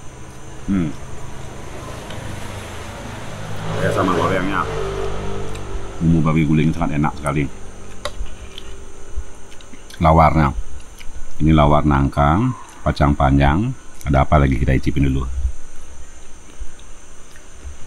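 A spoon and fork scrape and clink on a plate.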